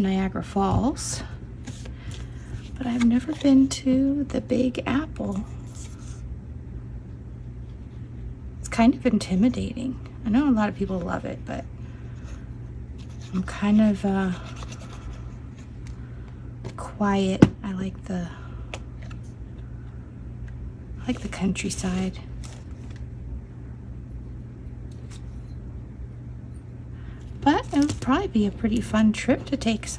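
Paper rustles and slides under hands on a table.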